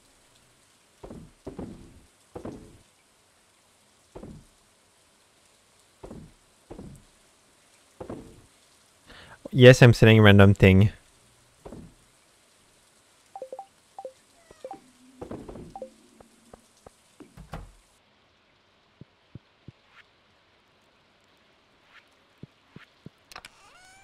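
Soft game menu clicks and pops sound now and then.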